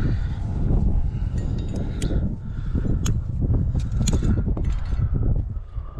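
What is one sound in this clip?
Metal gear clinks against rock.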